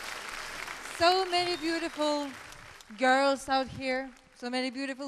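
A young man sings loudly through a microphone, echoing in a large hall.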